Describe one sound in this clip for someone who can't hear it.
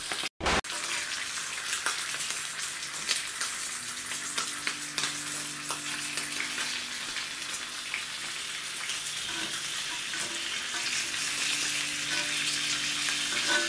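A knife and fork scrape and clink against a pan.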